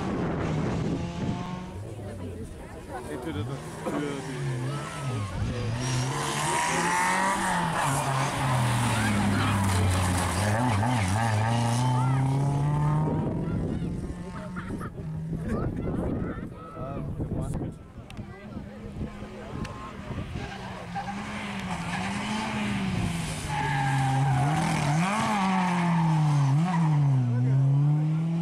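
A rally car engine revs hard and roars as the car speeds past.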